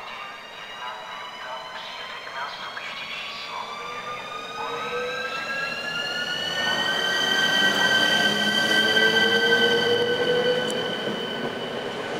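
Train wheels rumble and clatter on the rails, growing louder as the train passes close by.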